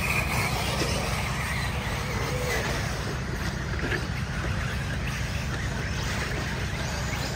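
Small electric model cars whine as they race around a dirt track.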